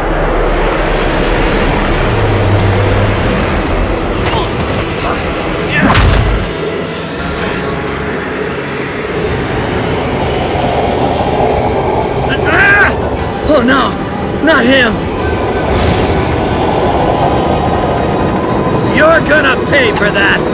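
Rocket thrusters roar steadily.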